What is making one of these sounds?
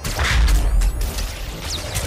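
A deep boom rumbles.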